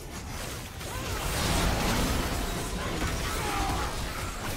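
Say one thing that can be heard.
Magic blasts crackle and boom in a fast fight.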